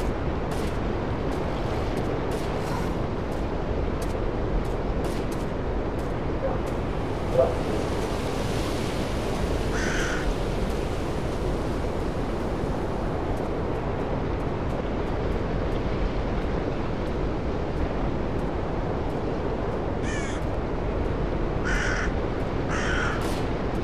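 Wind blows steadily through forest trees outdoors.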